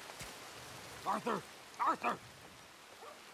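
A man calls out twice through a window.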